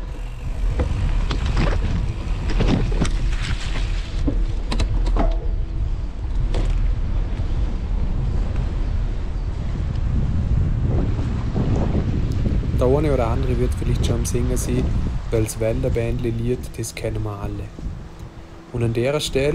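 Wind rumbles against the microphone while moving outdoors.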